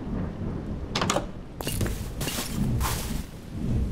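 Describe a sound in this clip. Wooden doors knock and click open.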